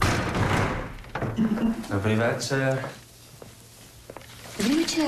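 Newspaper pages rustle.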